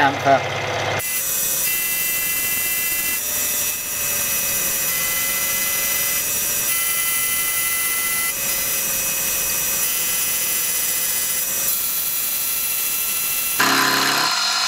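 A milling machine whirs steadily as its cutter grinds into metal.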